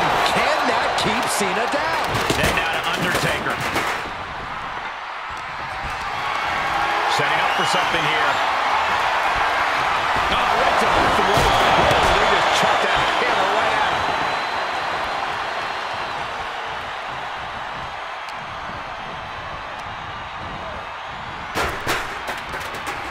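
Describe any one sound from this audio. Heavy thuds of bodies slam onto a wrestling mat.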